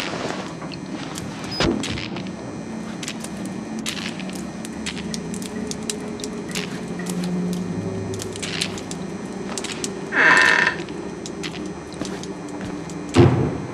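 Footsteps shuffle on a stone floor.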